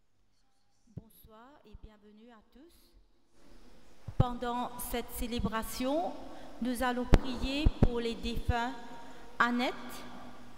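A woman reads aloud calmly into a microphone, heard through loudspeakers in an echoing hall.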